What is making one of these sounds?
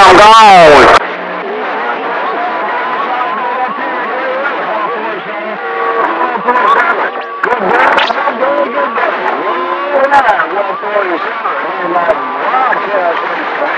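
A radio receiver plays a warbling, crowded signal through its small speaker.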